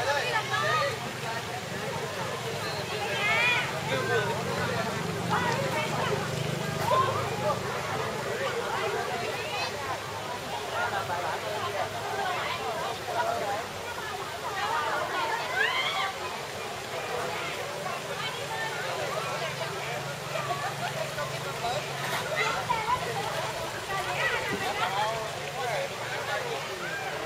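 Swimmers splash in water.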